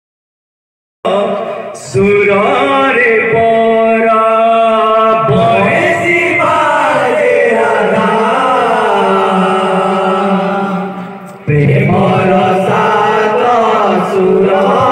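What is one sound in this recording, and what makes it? A man sings loudly through a microphone over a loudspeaker.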